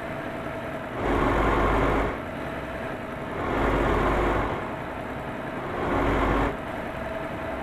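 Cars whoosh past the truck.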